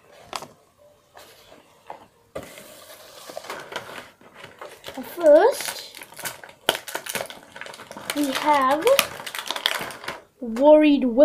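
Plastic packaging rustles and crinkles as it is handled close by.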